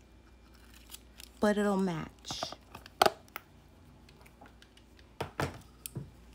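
Small plastic items click and tap lightly.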